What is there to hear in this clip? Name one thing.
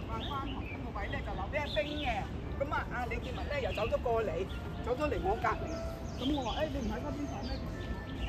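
Young women talk casually as they walk past nearby outdoors.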